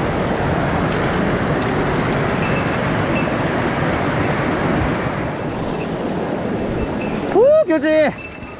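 A mountain stream rushes and splashes loudly over rocks.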